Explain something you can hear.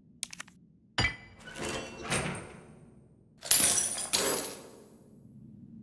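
Bolt cutters snap through a metal chain, which rattles.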